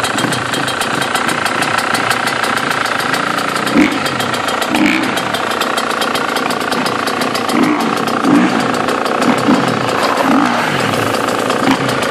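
A motorcycle engine idles steadily nearby.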